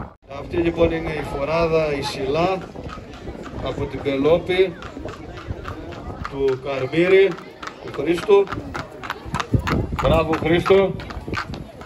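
Horse hooves clop on a paved road.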